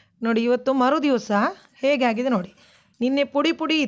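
A metal spoon scrapes and stirs inside a metal pot.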